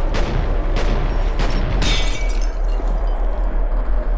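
Glass shatters and tinkles.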